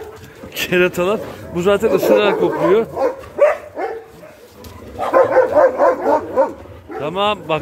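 Several dogs bark and yelp excitedly close by.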